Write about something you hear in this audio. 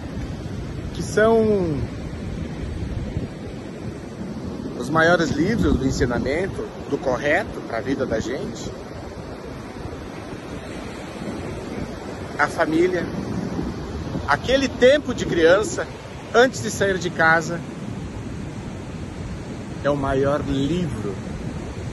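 A middle-aged man talks close up, with animation.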